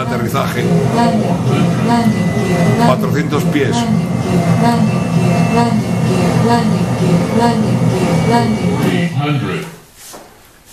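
Jet engines drone steadily in a cockpit.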